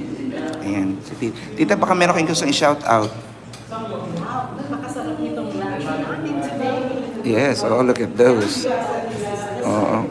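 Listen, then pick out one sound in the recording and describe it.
A middle-aged woman talks with animation close by.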